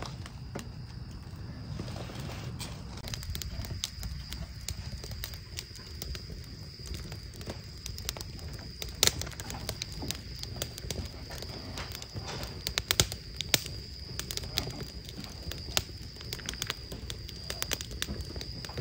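Fingernails tap and click softly close by.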